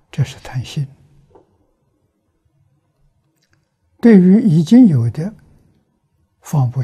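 An elderly man speaks calmly and slowly into a close microphone, with pauses between phrases.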